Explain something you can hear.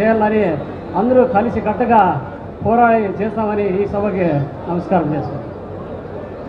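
A man speaks with animation into a microphone, heard over a loudspeaker.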